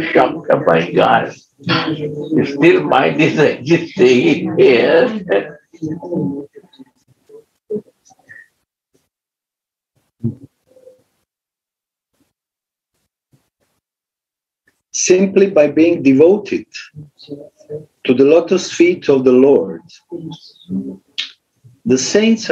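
An elderly man speaks calmly over an online call, pausing now and then.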